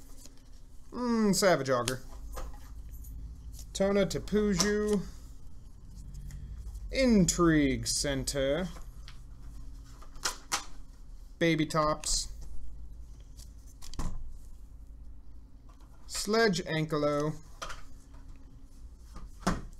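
Playing cards slap softly as they are laid down on a table.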